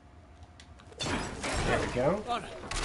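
A heavy chandelier swings and crashes with a loud rumble.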